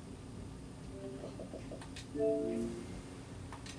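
Short electronic chimes sound from a television speaker as menu selections change.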